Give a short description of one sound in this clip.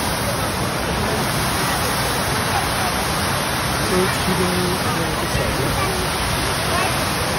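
A fountain splashes and rushes steadily nearby.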